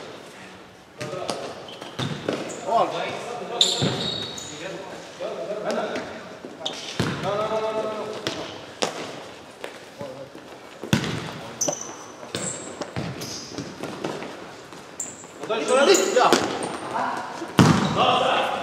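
A ball is kicked with sharp thuds in an echoing hall.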